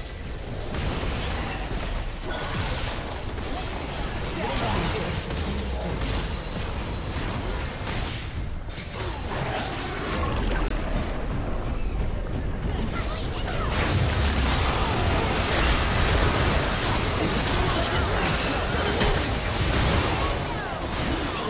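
Magic spells whoosh and crackle in a fast fight.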